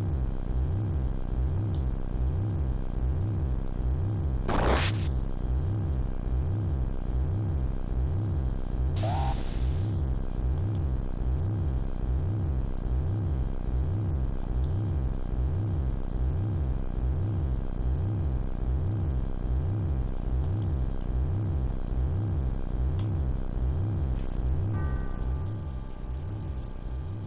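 Low, pulsing game music throbs steadily and fades near the end.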